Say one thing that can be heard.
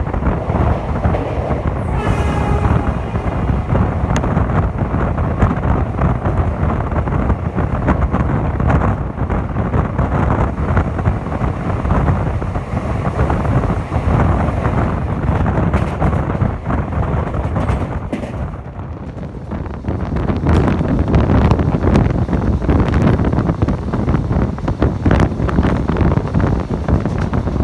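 A passenger train rumbles and clatters along the rails at speed, heard from an open door.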